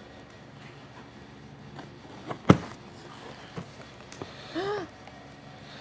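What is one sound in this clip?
Cardboard rustles as a box is opened.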